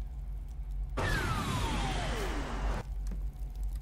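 A heavy door slides shut with a falling whoosh.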